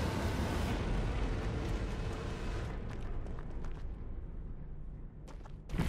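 Footsteps run through dry grass.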